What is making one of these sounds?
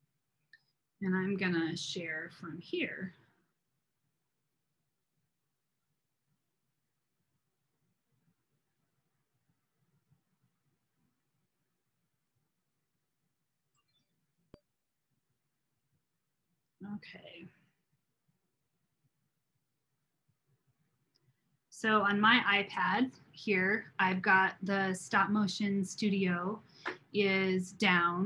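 A woman talks calmly through an online call.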